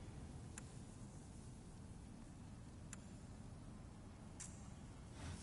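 Short menu clicks sound.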